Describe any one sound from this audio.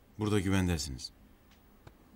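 A man speaks gruffly nearby.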